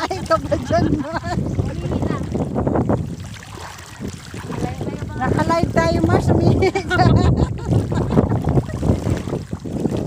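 Water splashes around a person's legs and hands.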